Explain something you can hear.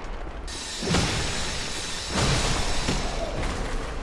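A blade slashes and strikes in a fight.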